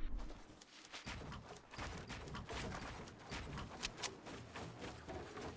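Wooden walls clatter as they are built.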